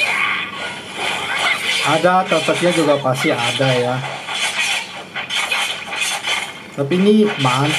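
Game music and sound effects play from a small phone speaker.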